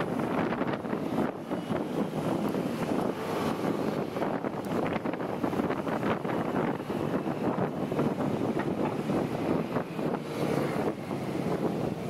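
Wind rushes and buffets loudly.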